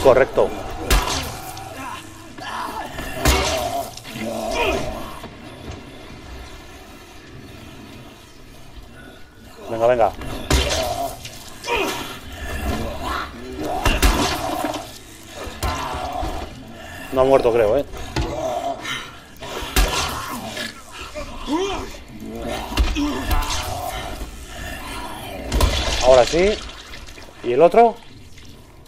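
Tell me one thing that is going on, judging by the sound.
Heavy blows thud and smack against a body.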